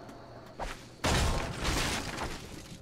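A pickaxe strikes wood with loud cracks.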